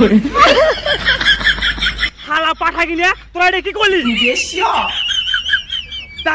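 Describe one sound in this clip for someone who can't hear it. Young men laugh close by.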